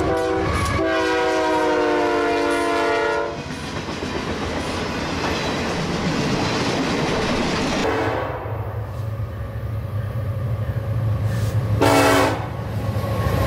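A diesel locomotive blows its air horn.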